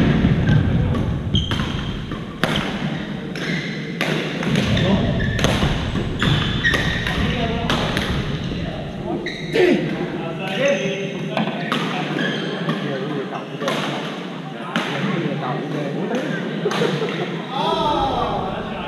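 Voices of young men echo around a large hall.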